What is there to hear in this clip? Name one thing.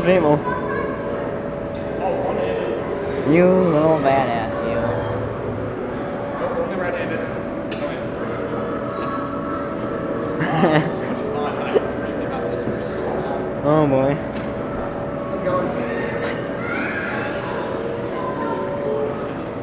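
A ride machine hums steadily as it rocks.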